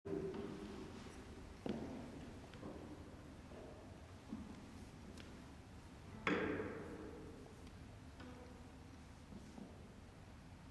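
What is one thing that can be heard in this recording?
A cello plays sharp, accented notes that ring out in a large echoing hall.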